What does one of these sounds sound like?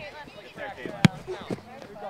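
A ball is kicked with a sharp thump.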